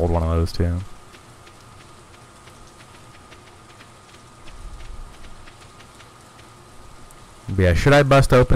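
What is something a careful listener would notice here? Soft footsteps tap steadily on the ground.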